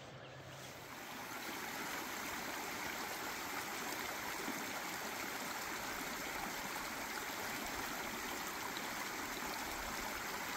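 A shallow stream trickles and babbles over rocks.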